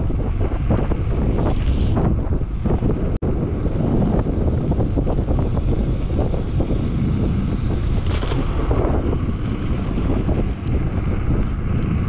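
Strong wind rushes and buffets loudly past at speed.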